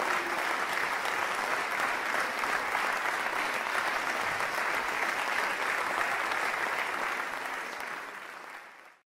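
An audience applauds in a large hall, then the applause fades away.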